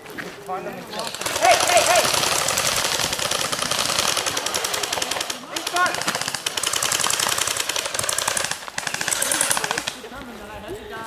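Rifles fire in rapid bursts outdoors.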